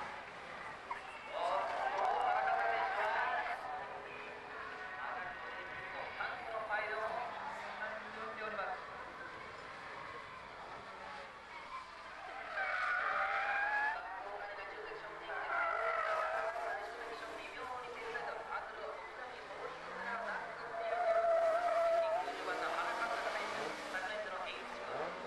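Tyres squeal on tarmac.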